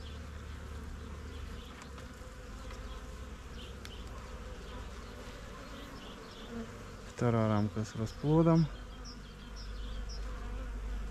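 Bees buzz steadily close by.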